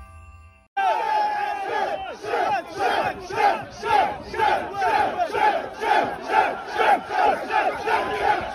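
A crowd of men chants loudly and rhythmically outdoors.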